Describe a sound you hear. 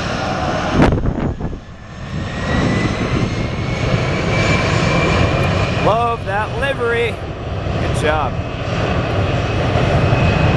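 A jet engine whines and roars steadily as an airliner taxis past.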